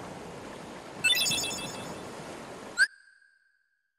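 A bright chiming jingle rings out.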